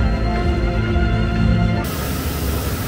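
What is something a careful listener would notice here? Music with a steady pitched tune plays from a nearby loudspeaker.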